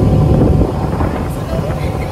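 A young woman talks over the engine noise.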